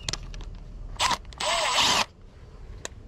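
A cordless power driver whirs in short bursts.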